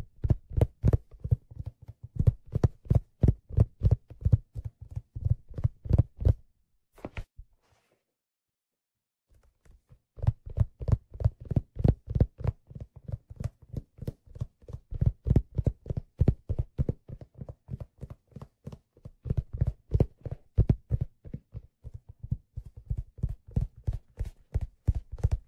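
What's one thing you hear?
Fingers tap rapidly on a leather case close to a microphone.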